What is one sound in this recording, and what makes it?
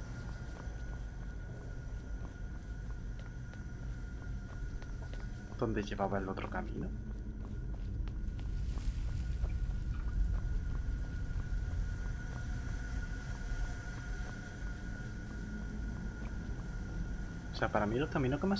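Footsteps tap on stone at a steady pace.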